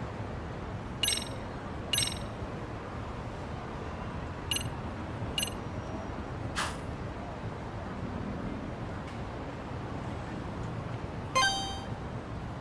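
Short electronic menu chimes beep now and then.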